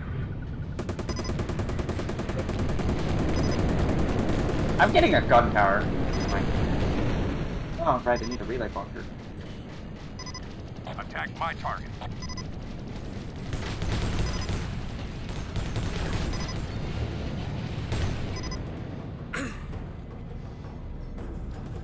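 Game weapons fire with loud blasts and whooshes.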